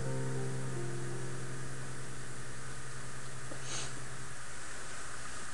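Piano chords ring out and slowly fade.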